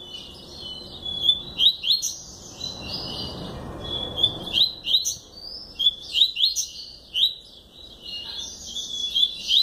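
A caged bird sings a fast, chirping song close by.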